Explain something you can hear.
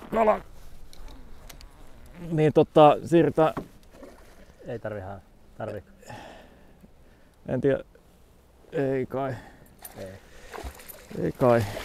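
A fishing reel clicks as the line is wound in.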